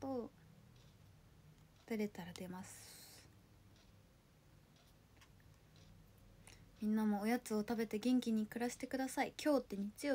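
A young woman talks close to a microphone in short bursts, with pauses.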